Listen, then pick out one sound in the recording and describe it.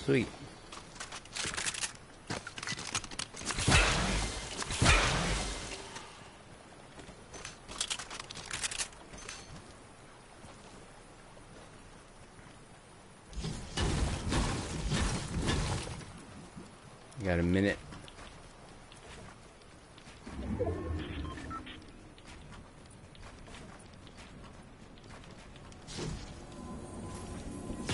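A middle-aged man talks casually into a close microphone.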